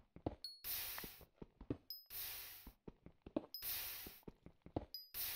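A pickaxe chips at stone with quick, repeated taps.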